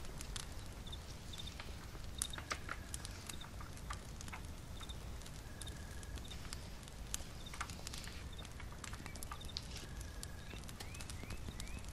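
A small fire crackles and pops softly.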